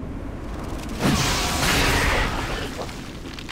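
A magic spell blasts and crackles.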